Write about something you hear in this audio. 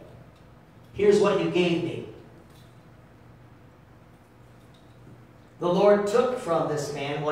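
A man speaks with emphasis through a microphone and loudspeakers in a large room, pausing between phrases.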